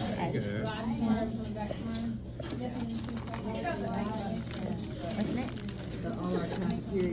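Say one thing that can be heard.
A young woman talks softly and cheerfully nearby.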